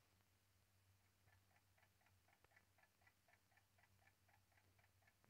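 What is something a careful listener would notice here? A clock ticks steadily and quickly.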